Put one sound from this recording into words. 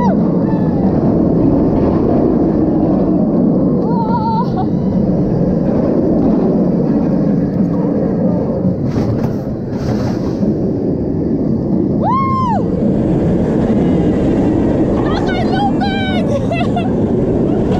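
A roller coaster rumbles and rattles on its track.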